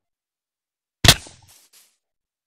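A heavy thud sounds as a game character lands hard from a fall.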